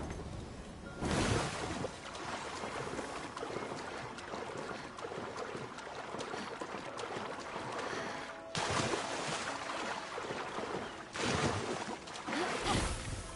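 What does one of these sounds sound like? Water sloshes and splashes steadily.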